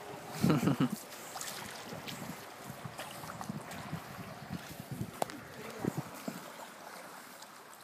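A canoe paddle dips and splashes in river water.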